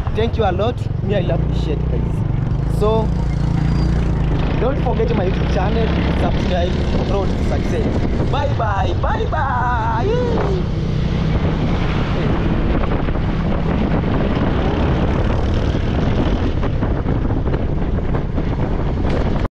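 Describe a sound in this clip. A motorcycle engine rumbles steadily while riding.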